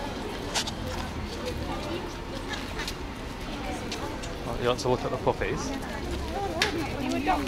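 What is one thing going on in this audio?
Outdoor street noise with distant voices and traffic hums steadily.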